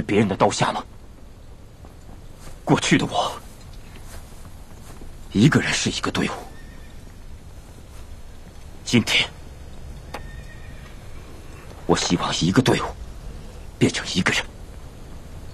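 A young man speaks slowly and gravely, in short phrases with pauses.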